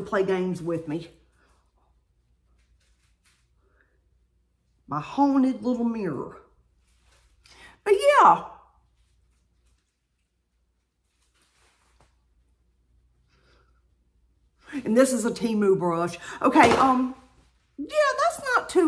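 A middle-aged woman talks with animation close to a microphone, in short bursts.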